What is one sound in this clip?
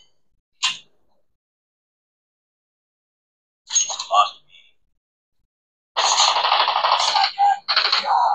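Gunfire and explosions from a mobile game crackle through a small phone speaker in short bursts.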